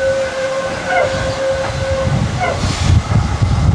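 A tram's wheels squeal on a curve in the rails.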